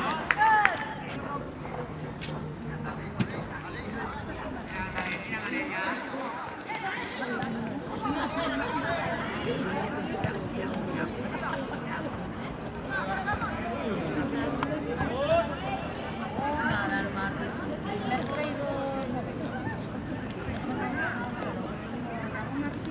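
Children shout and call out across an open field outdoors.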